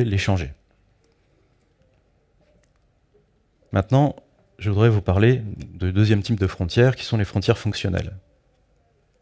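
A man speaks through a microphone in short bursts with pauses.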